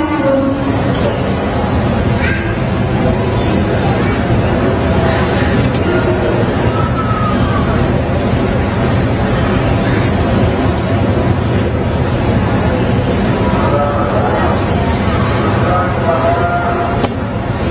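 A young man chants in a long, melodic voice through a microphone, heard over a loudspeaker in an echoing hall.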